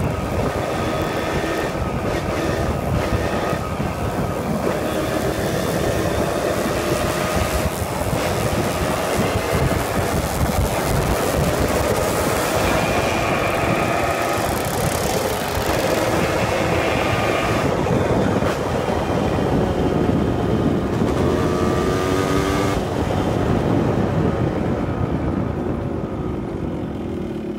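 A motorbike engine hums steadily up close, rising and falling in pitch.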